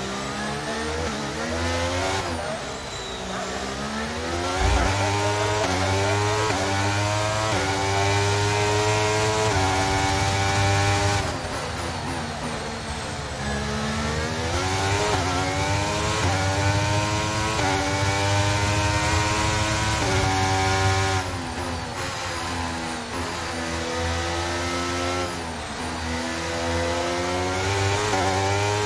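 A racing car engine screams, rising in pitch and dropping sharply with each gear change.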